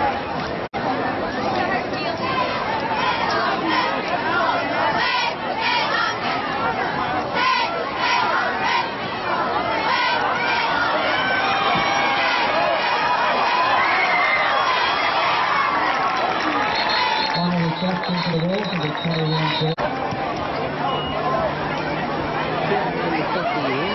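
A crowd cheers and shouts in the open air.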